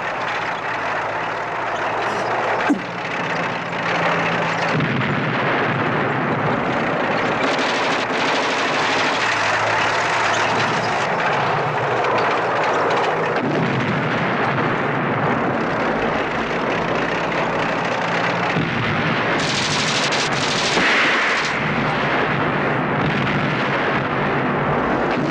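Heavy tank engines rumble and clank steadily.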